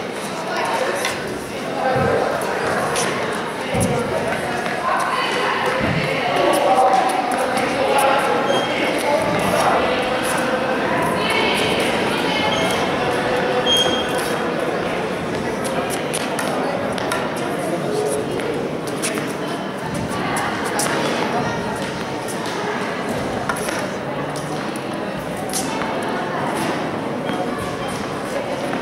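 Children chatter and call out in an echoing indoor hall.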